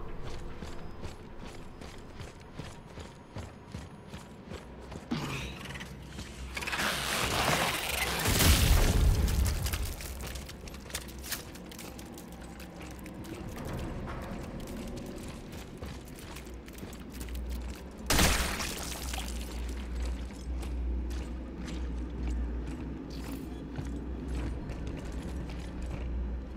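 Heavy boots thud on a hard floor.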